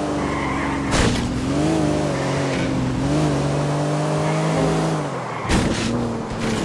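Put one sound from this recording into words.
A car bumps hard against a roadside barrier.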